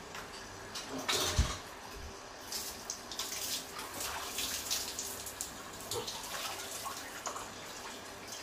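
A small bird splashes and flutters in a tub of water.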